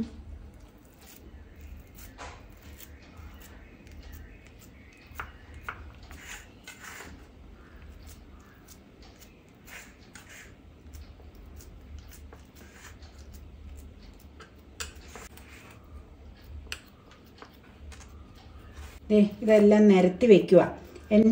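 Hands pat and press soft dough in a metal bowl.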